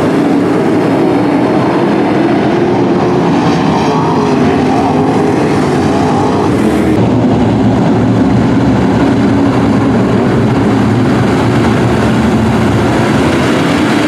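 Several race car engines roar loudly.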